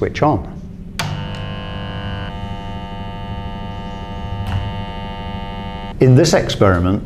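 An induction heater hums with a steady high-pitched buzz.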